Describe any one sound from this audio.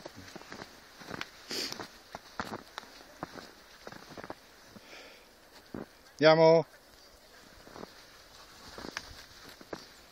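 A dog bounds through snow.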